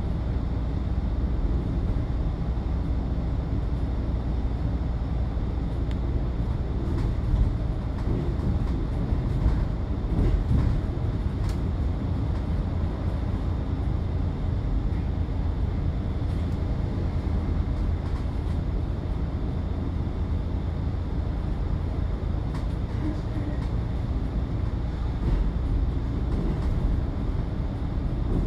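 Tyres roll on the road surface with a constant rumble.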